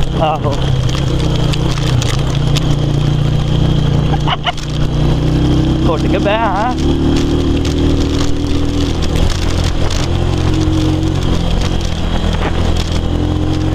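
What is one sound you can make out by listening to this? Tyres rumble and rattle over a rough dirt track.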